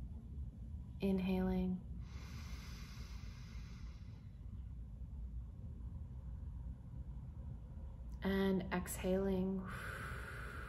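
A woman speaks calmly and softly, close to a microphone, with long pauses.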